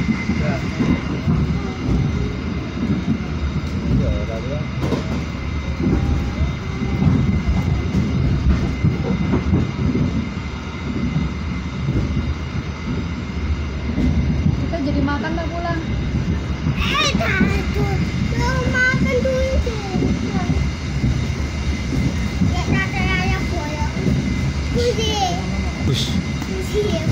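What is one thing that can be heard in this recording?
A train rumbles and rattles steadily along the tracks, heard from inside a carriage.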